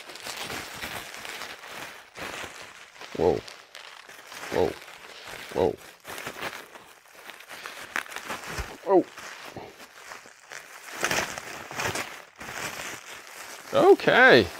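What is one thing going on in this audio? Plastic wrap crinkles and rustles as it is handled.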